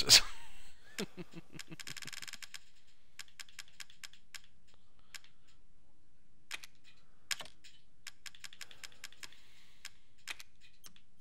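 Short soft clicks tick as menu items are scrolled.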